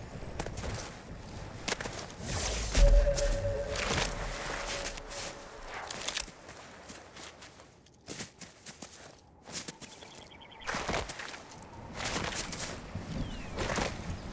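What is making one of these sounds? Water splashes as a game character wades through it.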